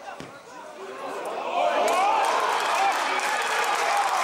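A crowd of spectators cheers loudly as an attack builds near the goal.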